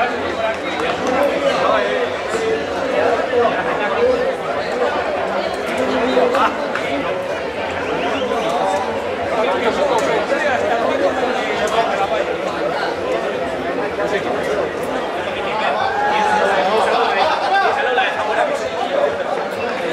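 A crowd of men and women chatters and shouts outdoors.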